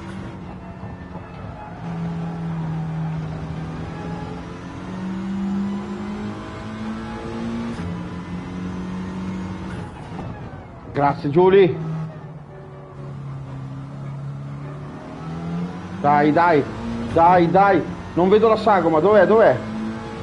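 A racing car engine hums and revs up and down through gear changes.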